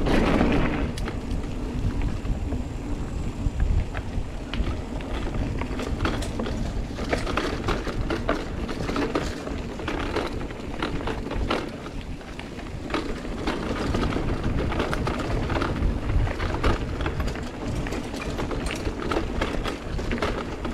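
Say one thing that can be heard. Wind rushes and rumbles past close by.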